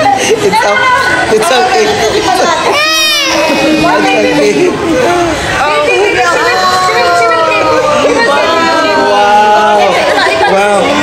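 A toddler cries loudly close by.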